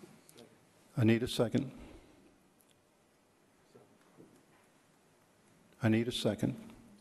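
An elderly man speaks calmly through a microphone, in short phrases.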